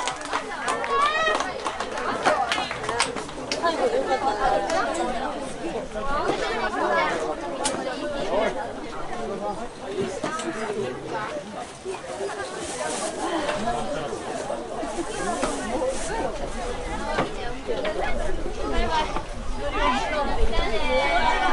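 Young women shout and cheer excitedly outdoors, some way off.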